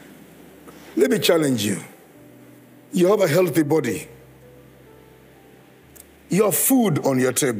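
An elderly man speaks with animation through a microphone, in short bursts with pauses.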